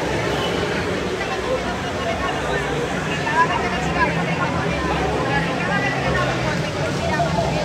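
A crowd of people talks and shouts in a large echoing hall.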